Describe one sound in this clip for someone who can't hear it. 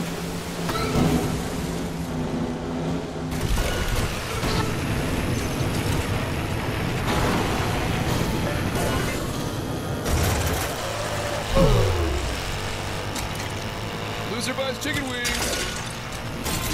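Game engines roar and whine as racers speed along.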